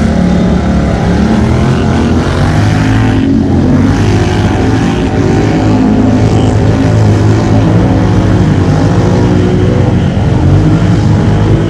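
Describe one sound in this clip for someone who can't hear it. Quad bike engines roar loudly.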